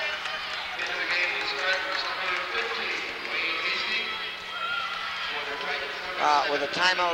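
A crowd of young men chatters loudly in a large echoing gym.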